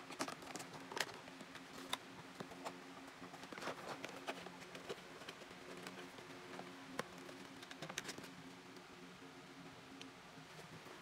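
A small cardboard box scrapes against a surface.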